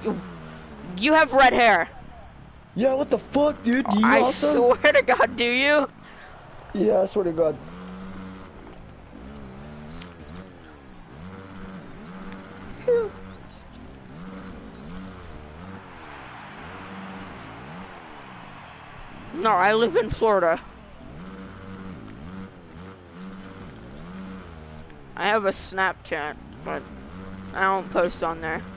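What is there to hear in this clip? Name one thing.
A dirt bike engine revs and whines, rising and falling.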